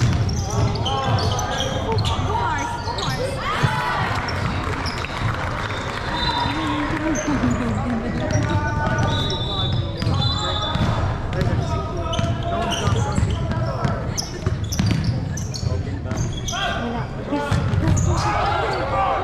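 Young players shout and call to each other across an echoing hall.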